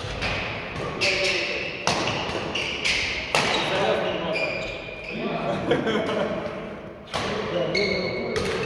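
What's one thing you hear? Shuttlecocks are struck with sharp pops of badminton rackets in a large echoing hall.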